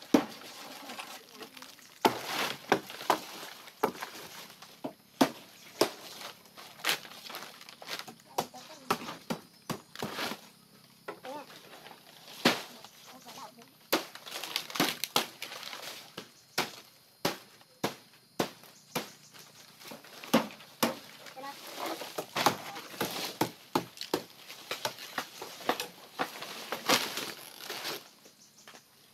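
Dry palm leaves rustle and crackle close by.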